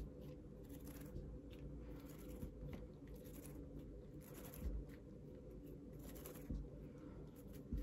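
Waxed thread rasps softly as it is pulled through leather.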